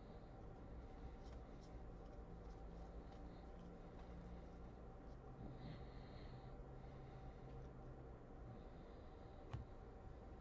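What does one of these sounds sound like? Trading cards rustle and flick as they are shuffled through by hand.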